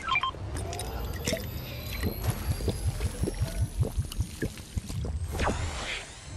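A character gulps down a drink.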